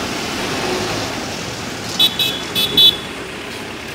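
A motorcycle engine passes by.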